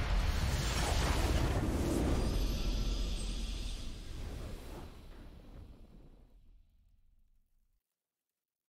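A triumphant fanfare swells and fades away.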